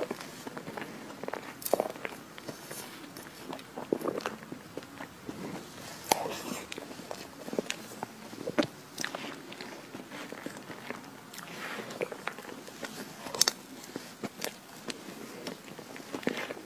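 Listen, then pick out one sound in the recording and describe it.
A metal spoon scrapes through soft chocolate cake.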